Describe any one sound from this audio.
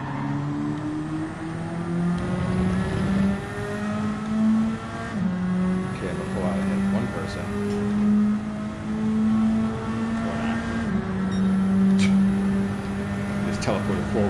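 A racing car engine roars loudly, climbing in pitch and dropping sharply at each gear change.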